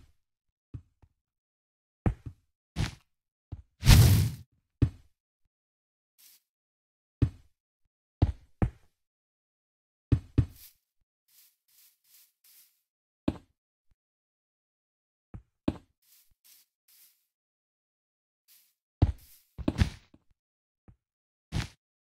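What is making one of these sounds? Blocks thump softly as they are placed, one after another in short bursts.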